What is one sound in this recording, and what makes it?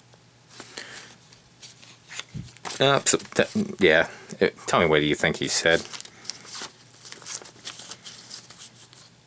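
Paper and banknotes rustle in a hand.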